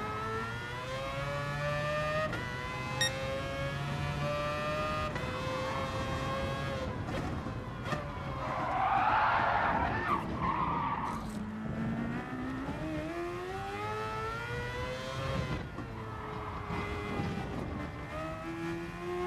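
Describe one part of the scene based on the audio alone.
A racing car engine roars, revving up and dropping as it shifts gears.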